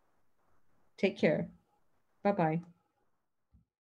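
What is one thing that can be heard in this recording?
A middle-aged woman speaks warmly over an online call.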